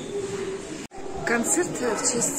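A middle-aged woman speaks close up.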